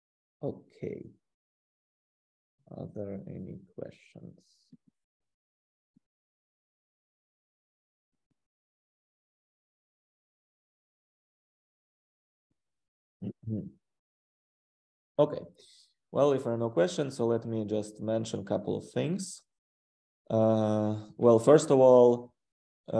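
A man lectures calmly over an online call, with pauses.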